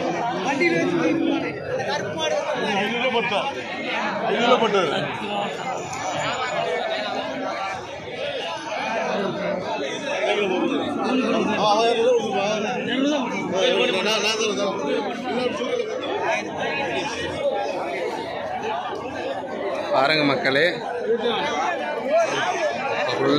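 A crowd of men talk loudly all around, close by.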